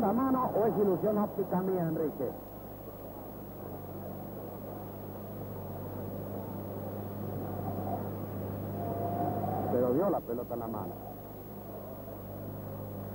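A large stadium crowd murmurs and cheers in the distance.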